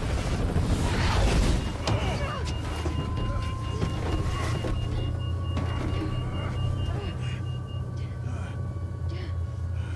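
Wind rushes loudly past an open door.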